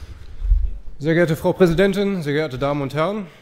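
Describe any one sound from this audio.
A man begins speaking firmly through a microphone at a lectern.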